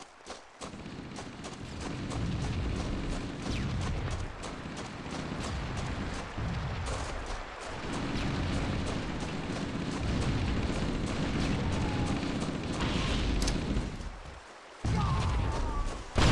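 Footsteps thud steadily on grass and dirt.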